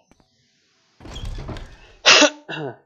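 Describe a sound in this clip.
A heavy wooden door opens.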